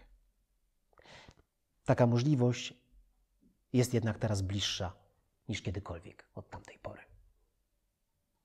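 A man reads aloud calmly, close to a microphone.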